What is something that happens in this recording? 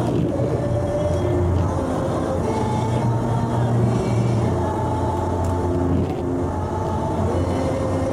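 A windscreen wiper swishes across the glass.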